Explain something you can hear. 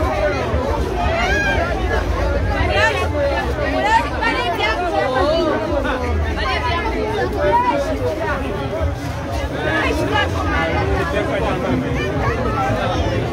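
A crowd of men and women chatter and call out all around, close by.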